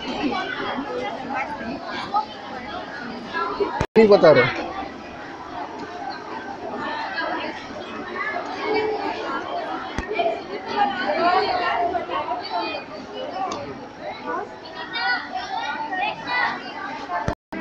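Young women chatter in a crowd nearby.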